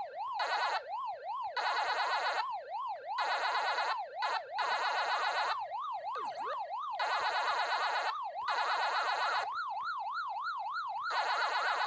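A video game siren warbles quickly up and down.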